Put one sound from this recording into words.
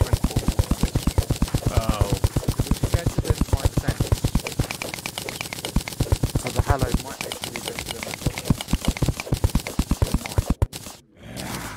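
Rapid pickaxe strikes chip at rock in a quick, steady rhythm.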